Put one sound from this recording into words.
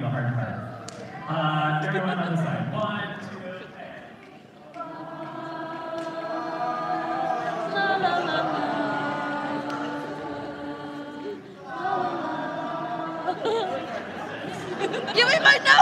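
A large choir sings sustained chords in an echoing hall.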